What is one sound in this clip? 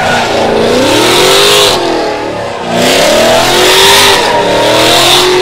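Tyres screech loudly on the track.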